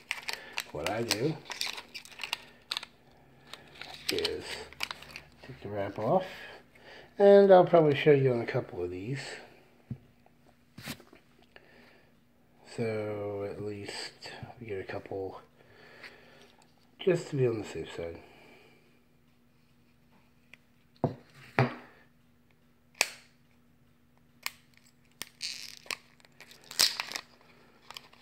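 Small plastic parts click and rattle in a man's hands.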